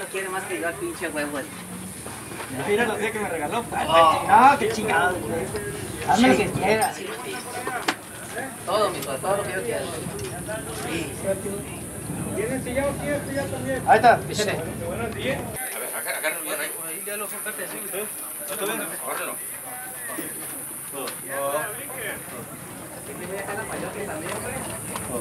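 Men talk nearby, outdoors.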